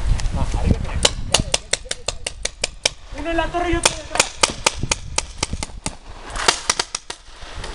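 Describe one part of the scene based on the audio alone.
Paintball guns fire in rapid popping bursts outdoors.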